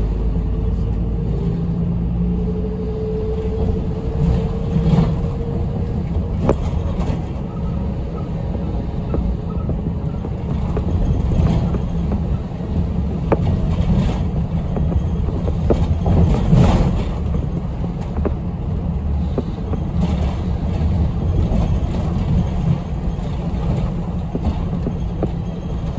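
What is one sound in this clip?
A bus engine rumbles steadily while driving along a street.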